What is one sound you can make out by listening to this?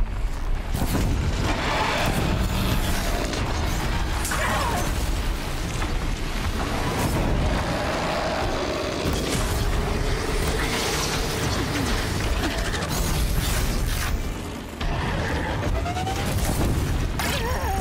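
A snowstorm wind howls steadily.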